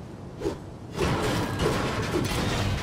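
A pickaxe swings and strikes a metal pole.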